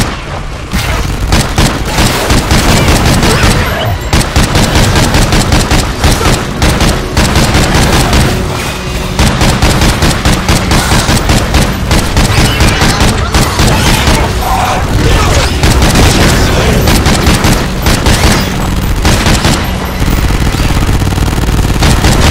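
Rifle shots crack out loudly, one after another.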